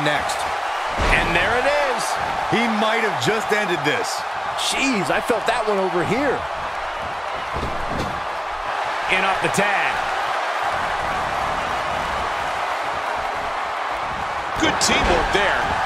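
Bodies slam hard onto a wrestling ring mat.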